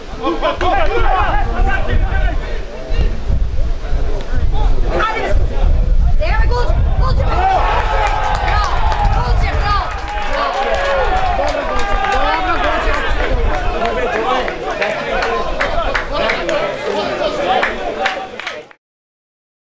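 Players shout to each other across an outdoor football pitch.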